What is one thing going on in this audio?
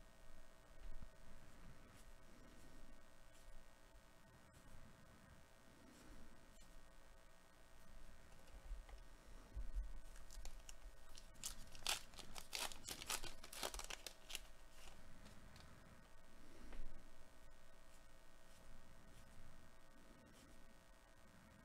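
Trading cards rustle softly as they are shuffled by hand.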